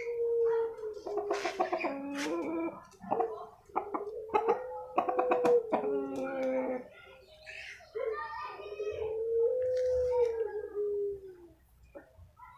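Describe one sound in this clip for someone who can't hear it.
A rooster crows loudly, close by.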